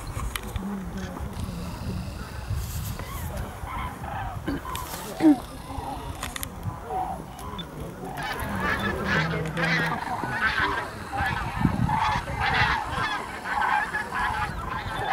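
A flock of geese honks and calls while flying overhead.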